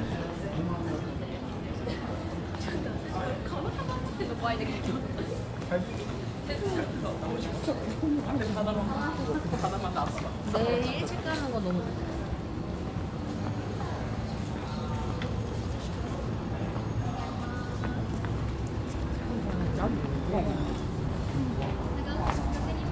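Many people chatter and talk nearby outdoors.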